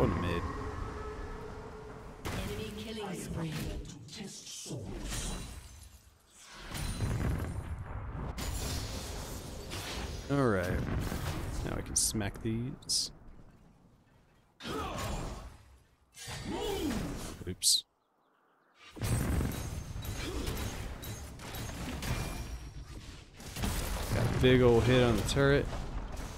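Game fight effects clash and zap in quick bursts.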